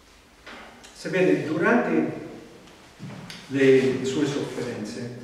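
A man speaks slowly into a microphone, as if reading aloud.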